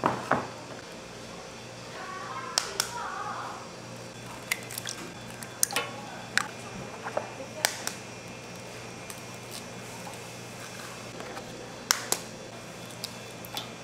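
Eggshells crack sharply against a metal tray.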